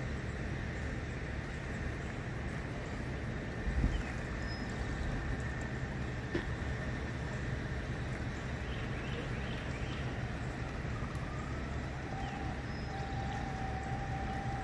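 Men talk quietly nearby outdoors.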